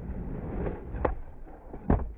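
A skateboard clacks and grinds on a ledge.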